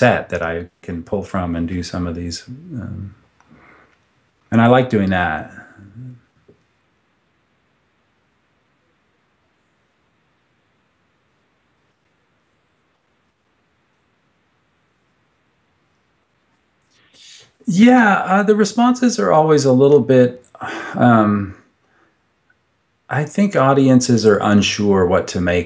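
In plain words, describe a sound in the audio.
A middle-aged man speaks calmly into a microphone, close by, in short bursts with pauses.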